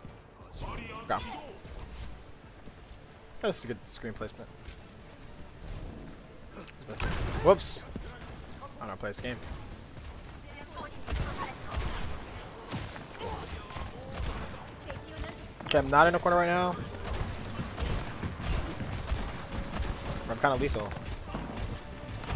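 A young man talks into a headset microphone with animation.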